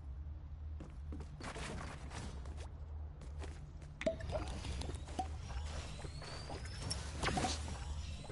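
Footsteps thud on a wooden floor.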